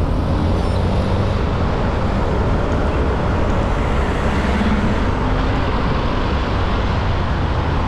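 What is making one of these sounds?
Motorcycles and cars drive past on the road nearby.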